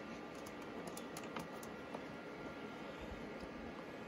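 A plastic laptop lid clicks and creaks open.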